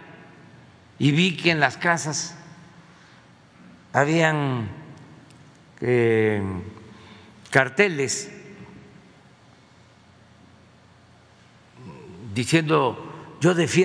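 An elderly man speaks into a microphone in short bursts with pauses.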